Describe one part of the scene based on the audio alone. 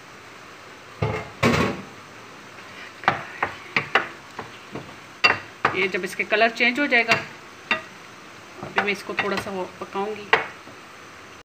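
A wooden spoon scrapes and taps against a metal frying pan while stirring pieces of meat.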